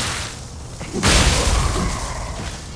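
Metal strikes metal with a sharp clang.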